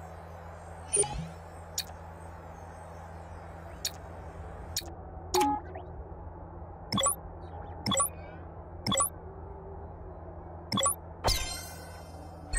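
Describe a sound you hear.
Short electronic menu clicks sound one after another.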